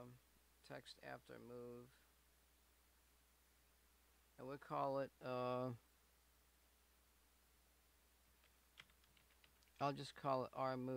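A man talks calmly and closely into a microphone, pausing between phrases.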